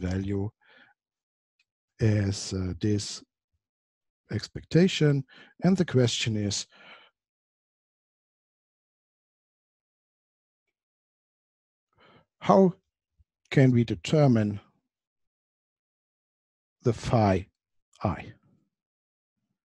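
A man talks calmly into a close microphone, in short bursts with long pauses.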